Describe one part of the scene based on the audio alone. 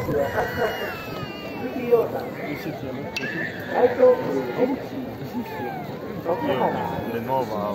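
A baby cries loudly nearby.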